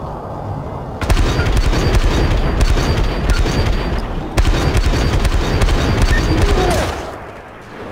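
A rifle fires repeated shots in quick bursts.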